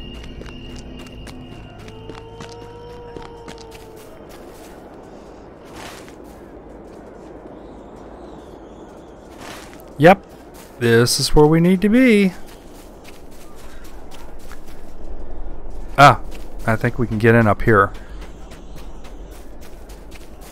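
Footsteps crunch along a path at a walking pace.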